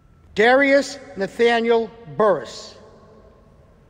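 A man announces through a microphone in a calm, clear voice, echoing in a large hall.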